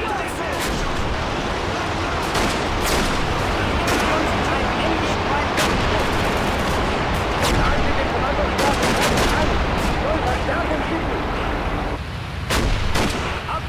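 Gunshots crack in sharp, scattered bursts.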